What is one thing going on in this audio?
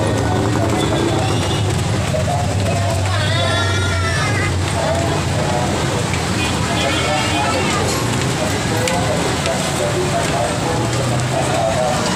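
Sandals slap and scuff on concrete steps as a person climbs.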